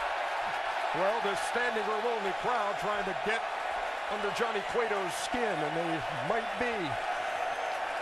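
A crowd of fans chants loudly in unison.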